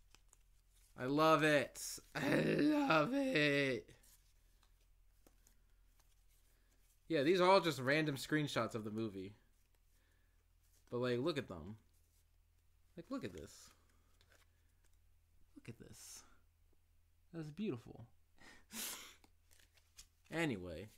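Playing cards shuffle and flick in a man's hands.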